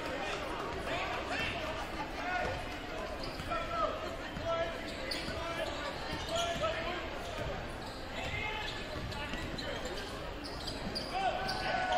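A crowd murmurs and calls out in a large echoing gym.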